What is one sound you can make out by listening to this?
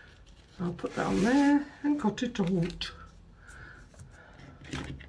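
Paper rustles as it is folded and smoothed.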